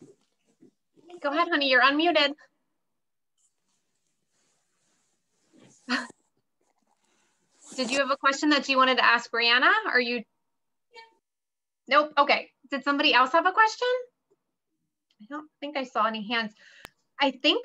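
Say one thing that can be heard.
A middle-aged woman speaks calmly and warmly through an online call, in short phrases with pauses.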